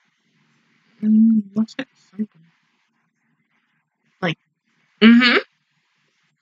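A young woman sings a few short bursts close to a microphone.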